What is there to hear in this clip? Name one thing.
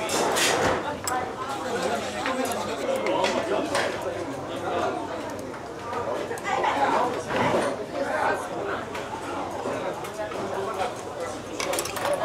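Metal chopsticks click against a dish.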